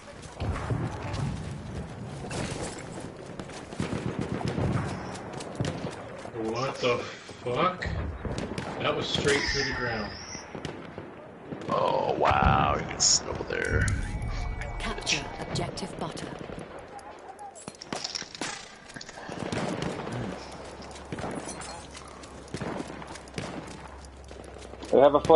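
Gunshots crack in bursts nearby.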